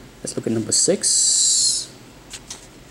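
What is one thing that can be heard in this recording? Glossy paper rustles and slides under fingers.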